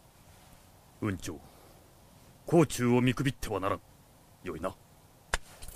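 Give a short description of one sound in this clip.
A middle-aged man speaks calmly and deliberately.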